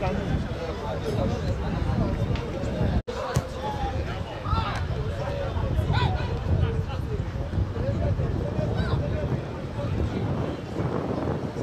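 Young men shout and call to each other outdoors, some distance away.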